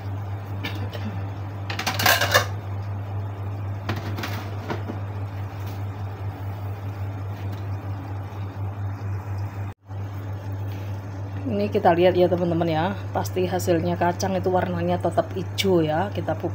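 Water bubbles and simmers inside a covered pot.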